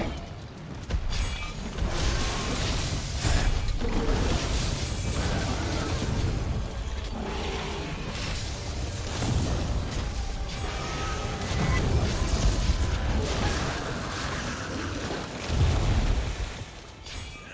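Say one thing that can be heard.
A huge monster growls and rumbles deeply.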